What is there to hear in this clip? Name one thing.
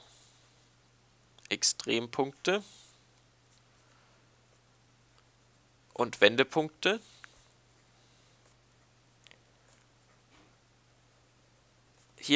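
A pen scratches softly on a writing surface.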